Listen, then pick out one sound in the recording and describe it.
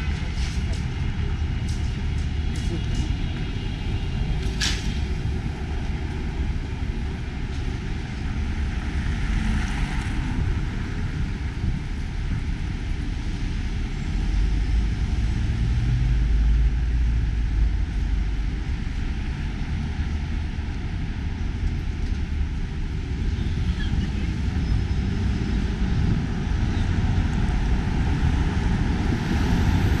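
City traffic hums steadily outdoors with a low rumble.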